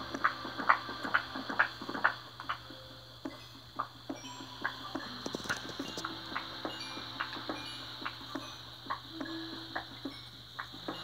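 Short tapping sound effects from a video game play through a small speaker, again and again.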